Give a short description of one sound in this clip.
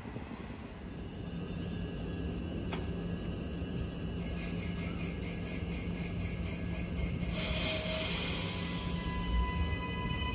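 A train stands idling at a platform with a steady electric hum.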